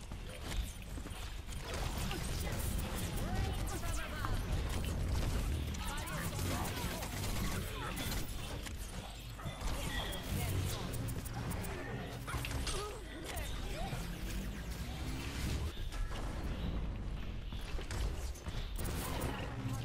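Video game explosions boom.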